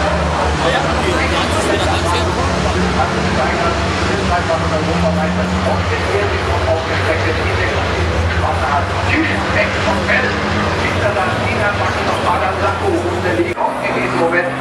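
Racing truck engines roar loudly as a pack of trucks speeds around a track.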